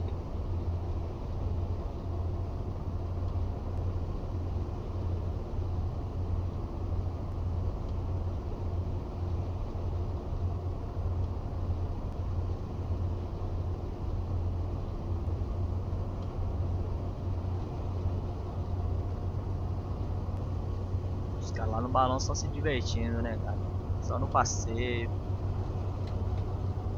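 A bus engine hums steadily at a low pitch.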